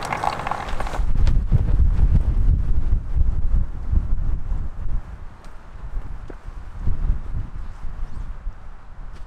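Wind rumbles across the open air.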